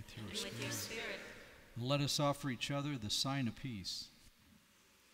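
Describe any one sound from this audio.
A man sings a chant through a microphone in a large echoing hall.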